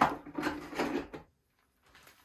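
A plastic wheel knocks against a balsa wood model wing.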